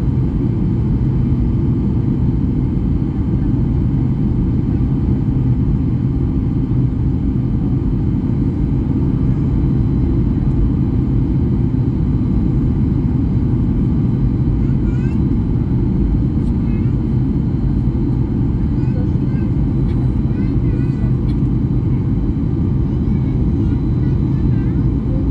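Jet engines roar steadily in a deep, constant rumble.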